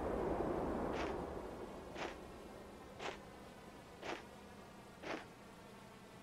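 Footsteps crunch slowly on snow.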